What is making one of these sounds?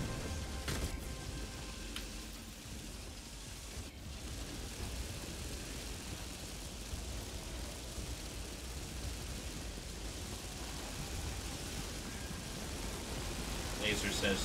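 A deep, steady rumble roars from a burning beam striking the ground.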